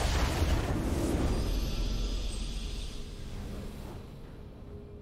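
A triumphant game fanfare rings out and slowly fades.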